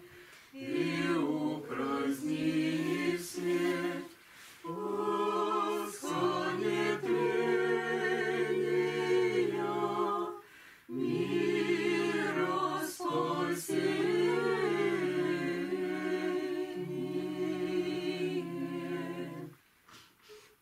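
A choir of women sings a slow chant together in a room with a light echo.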